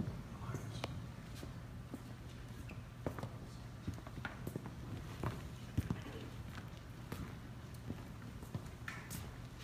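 A small group of musicians plays softly in a large echoing hall.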